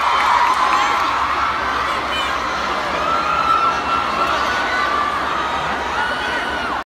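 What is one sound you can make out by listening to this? A large crowd cheers in a big open space.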